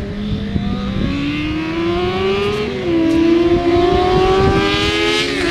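Motorcycle engines rise and fall in pitch as bikes race past.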